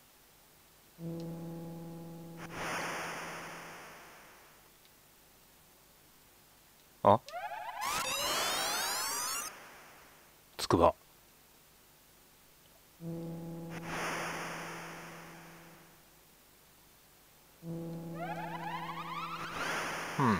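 Electronic game tones chime and slowly fade, again and again.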